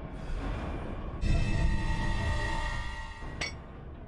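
A heavy metal lid clanks open.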